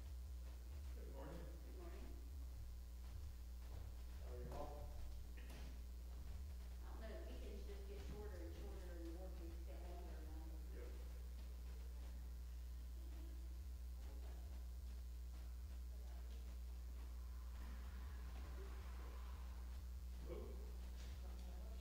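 A man speaks briefly in a large echoing hall, some distance away.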